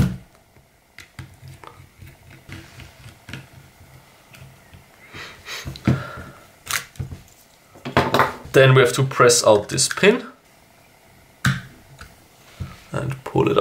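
Plastic parts click and clack as they are handled.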